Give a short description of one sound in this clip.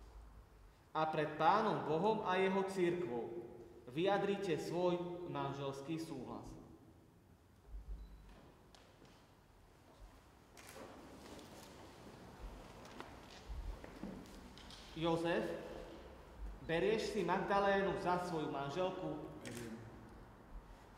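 A young man speaks slowly and calmly in an echoing hall.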